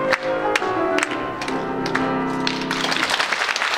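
A male choir sings the final chord of a song in a large hall.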